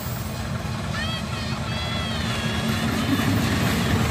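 A train horn blares.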